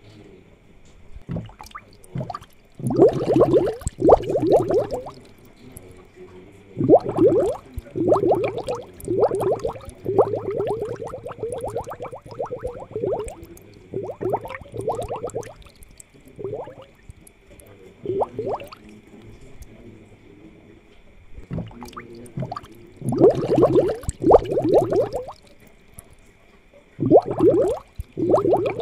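An aquarium air pump hums steadily.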